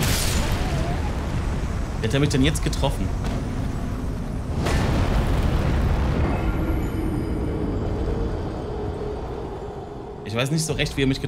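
Heavy crashing blows rumble and boom.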